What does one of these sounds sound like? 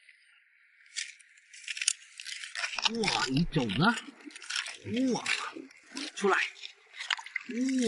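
A metal tool splashes and scrapes in shallow water.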